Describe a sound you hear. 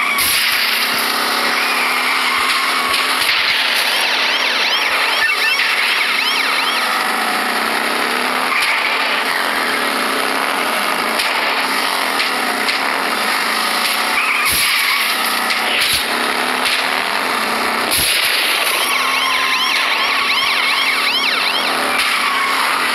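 Toy race car engines whine steadily.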